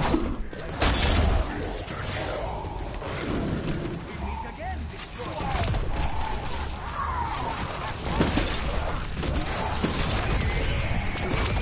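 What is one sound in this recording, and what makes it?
A weapon fires crackling electric bolts in bursts.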